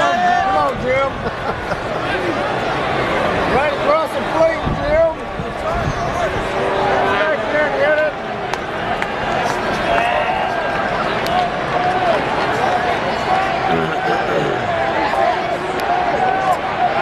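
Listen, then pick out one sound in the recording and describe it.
A large crowd chatters in an open-air stadium.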